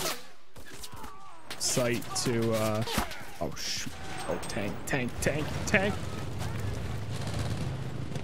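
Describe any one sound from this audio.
Rifle shots crack out one after another.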